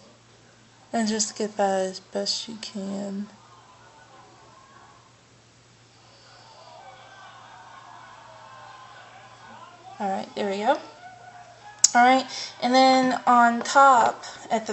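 A young woman talks close to a microphone, calmly and with pauses.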